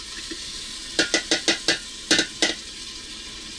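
A metal bowl clanks against a pot several times.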